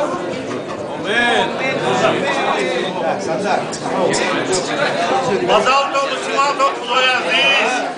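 A man chants or sings loudly close by.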